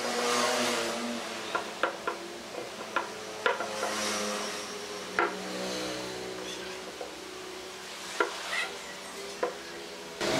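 A brush dabs and scrapes inside a small pot of glue.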